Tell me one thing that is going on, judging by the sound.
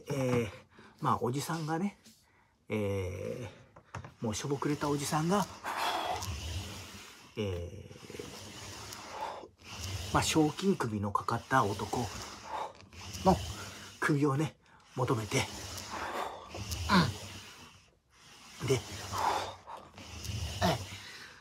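A middle-aged man talks with animation close to a microphone.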